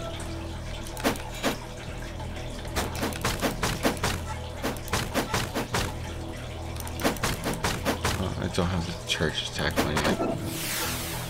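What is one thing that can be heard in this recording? Blades swish and strike in quick bursts.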